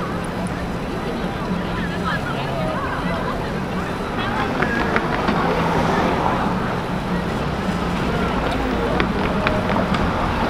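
Voices of a crowd murmur in the distance.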